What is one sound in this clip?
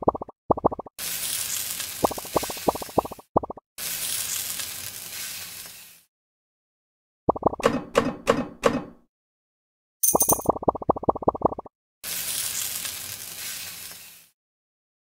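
A fiery hissing whoosh roars and then fades out.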